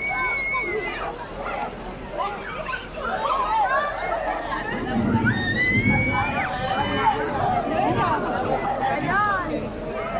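Heavy rain falls on a stone courtyard.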